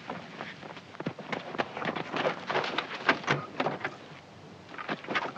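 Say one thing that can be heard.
A helicopter door clicks open.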